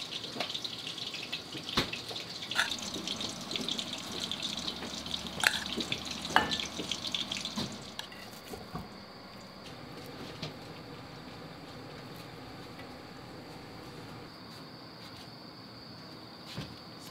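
Chopsticks clink against plates and trays.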